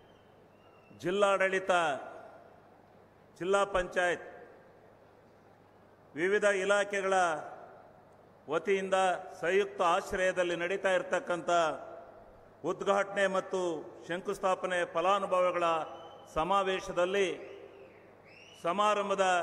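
An older man speaks into a microphone over loudspeakers, in bursts with pauses, his voice echoing in a large open space.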